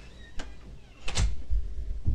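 A door closes with a thud.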